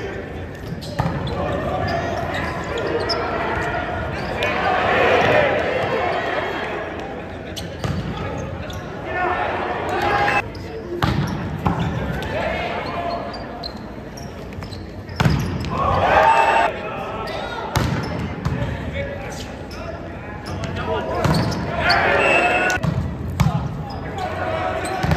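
A volleyball is struck hard, with sharp smacks echoing in a large hall.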